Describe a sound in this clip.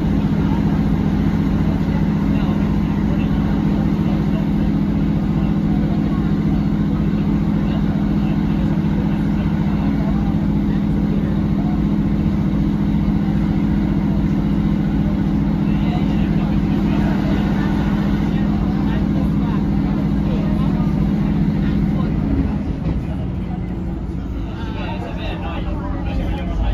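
Wheels clatter on the rails.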